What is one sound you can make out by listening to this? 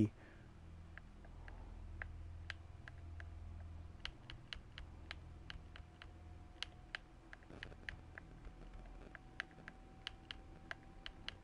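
Soft menu clicks tick quickly, one after another, as settings are adjusted.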